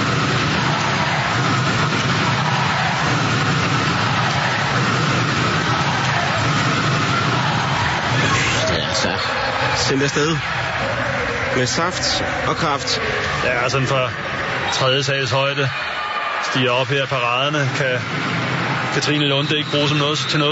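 A large crowd roars and cheers in a big echoing hall.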